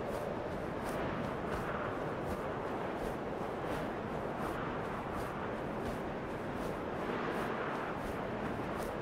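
Wind rushes steadily past a gliding bird.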